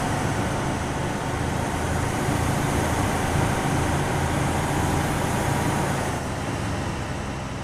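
Armoured vehicle engines rumble steadily as a convoy drives by.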